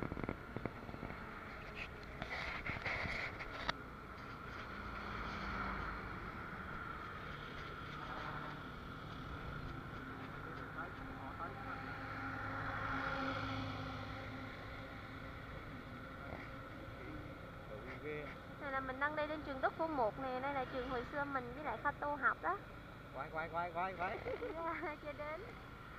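A scooter engine hums steadily while riding.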